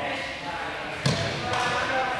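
A ball is kicked with a thud on the court.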